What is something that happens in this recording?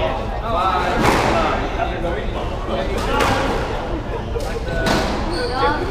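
A squash ball smacks sharply against the walls, echoing around the court.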